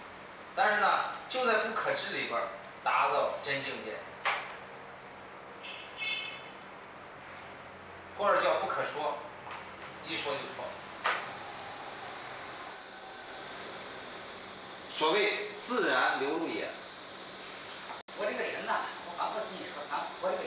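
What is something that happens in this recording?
A man speaks calmly and slowly nearby, with long pauses.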